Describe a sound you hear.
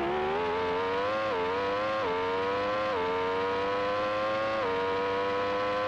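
A racing car engine whines and climbs in pitch, dropping briefly at each gear change.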